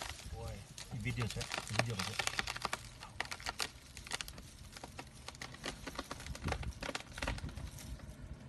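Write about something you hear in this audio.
Leafy branches rustle and snap as an elephant tugs at a tree.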